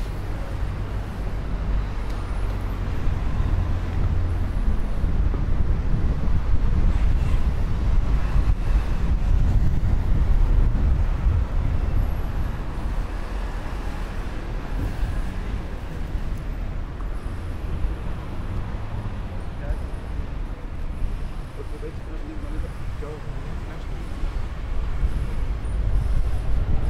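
Traffic rumbles steadily in the distance.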